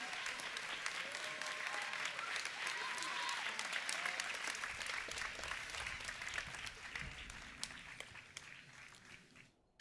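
A crowd applauds outdoors and the clapping slowly fades.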